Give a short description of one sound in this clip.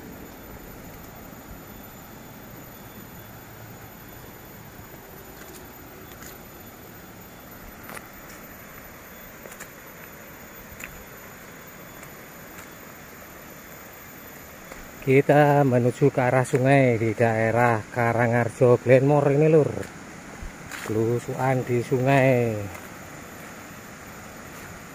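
Footsteps crunch softly on dry leaves and dirt.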